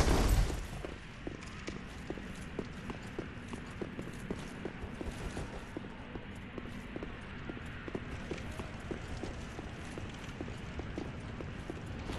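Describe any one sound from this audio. Armoured footsteps clank quickly on a stone floor.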